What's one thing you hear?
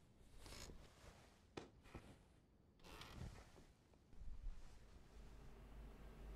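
Bare feet step softly on a floor.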